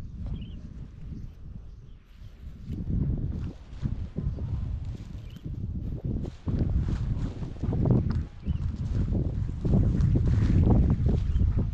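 Wind blows outdoors, rumbling and buffeting.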